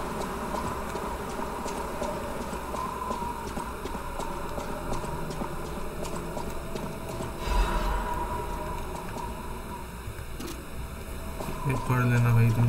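Footsteps tread steadily on a stone floor.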